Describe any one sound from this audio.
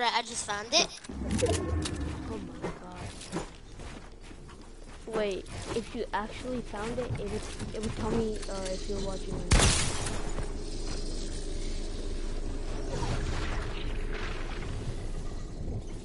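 Wooden building pieces snap into place with quick clacks in a video game.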